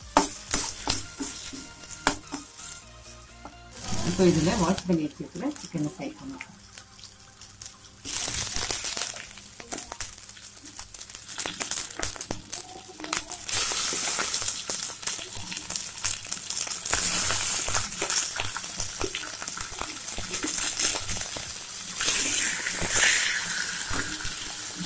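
A metal spatula scrapes and clicks against a pan.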